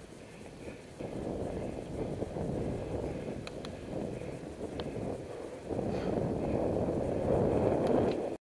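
Bicycle tyres hum steadily on an asphalt road.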